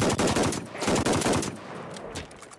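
Rifle shots crack loudly in quick bursts.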